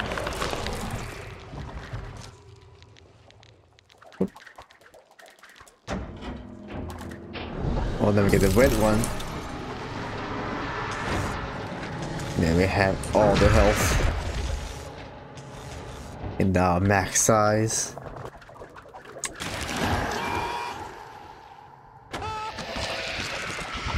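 Flesh squelches and splatters wetly.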